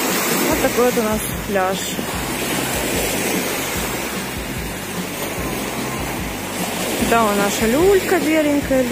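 Small waves wash and break gently on a sandy shore.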